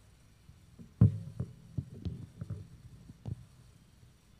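A microphone thumps and bumps as it is set into its stand.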